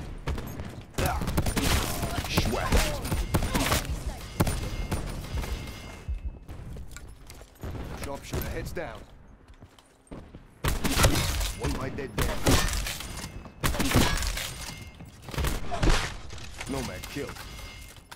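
Sniper rifle shots crack loudly, one at a time.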